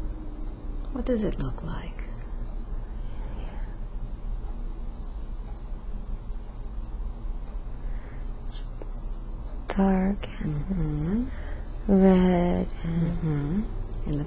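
A woman moans and whimpers in distress close by.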